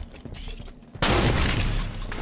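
A shot cracks loudly.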